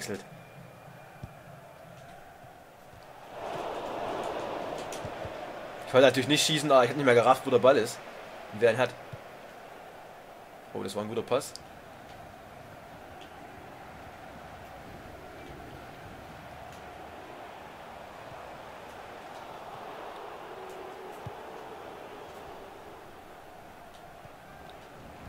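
A stadium crowd roars and cheers steadily throughout.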